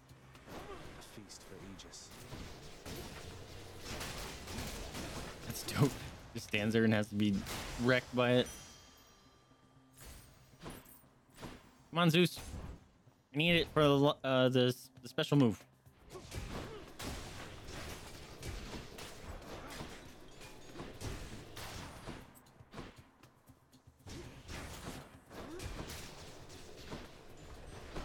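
Video game combat sounds clash and whoosh.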